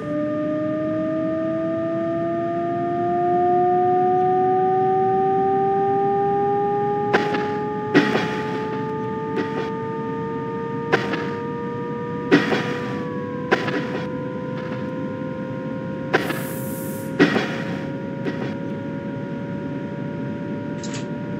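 An electric train's motor whines steadily, slowly rising in pitch.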